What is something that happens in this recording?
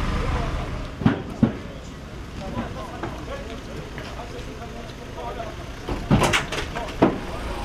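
Wooden boards knock and clatter.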